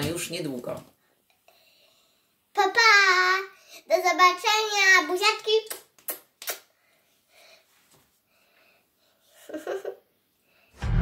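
A young girl speaks and sings playfully, close by.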